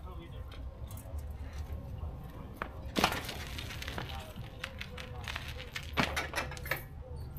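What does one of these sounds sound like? Metal parts of a beach cart clank and rattle.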